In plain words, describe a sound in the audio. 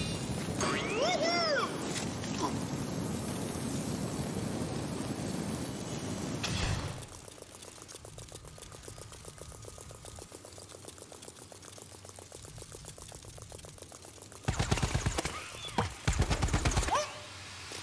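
Quick footsteps patter steadily on pavement.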